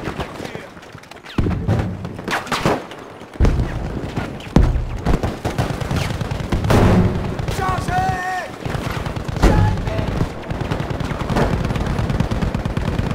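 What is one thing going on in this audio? Explosions and gunfire rumble and crack around a battlefield.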